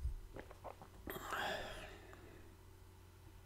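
A young man speaks briefly, close to a microphone.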